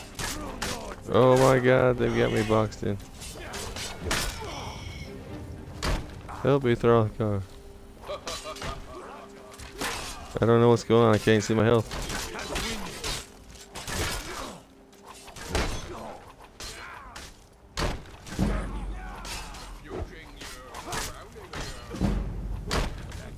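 Swords clash and clang against shields in a fight.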